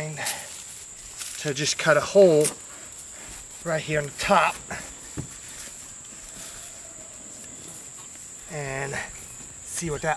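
A knife cuts into a thick pumpkin rind.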